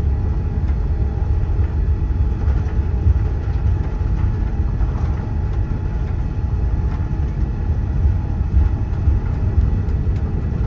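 Jet engines rumble steadily inside an airliner cabin.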